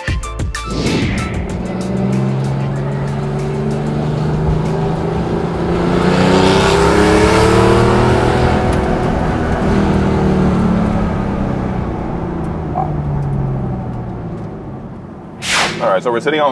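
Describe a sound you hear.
A car engine hums and revs up and down, heard from inside the car.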